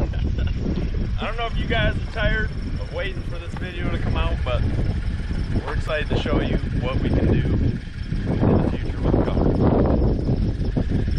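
A man speaks calmly from close by.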